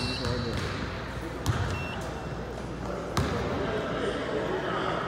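Voices of spectators chatter in a large echoing gym.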